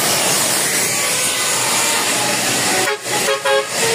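A truck engine roars as it drives past.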